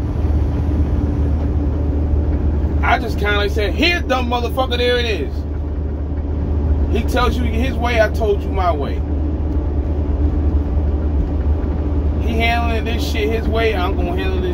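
A truck engine hums steadily, with road noise throughout.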